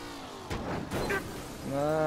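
A car crashes into another car with a metallic bang.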